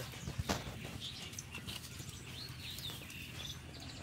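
Live fish flap and rustle against a wicker basket as hands grab them.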